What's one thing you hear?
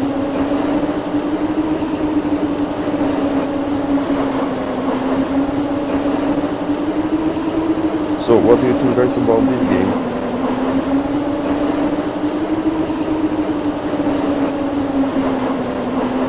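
A train engine hums steadily.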